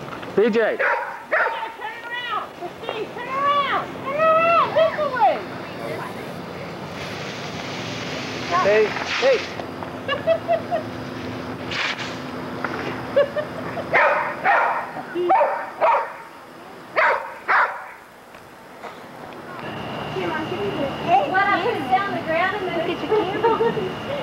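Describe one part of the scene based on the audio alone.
Children squeal and shout excitedly nearby.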